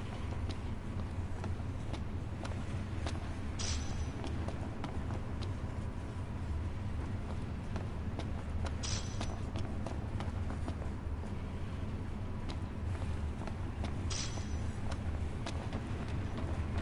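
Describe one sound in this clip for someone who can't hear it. Footsteps clank steadily on metal rails.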